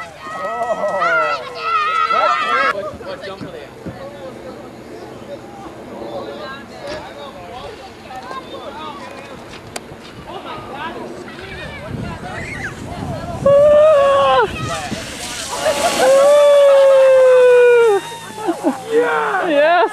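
Children shout and scream excitedly outdoors.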